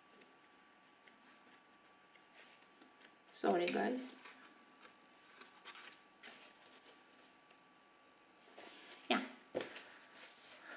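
Paper pages rustle and flap as a book is leafed through.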